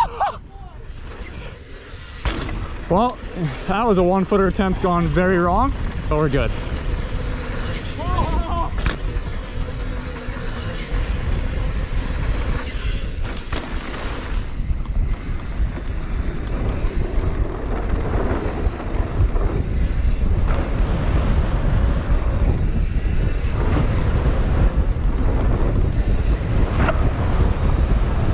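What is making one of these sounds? Wind buffets loudly past a moving rider.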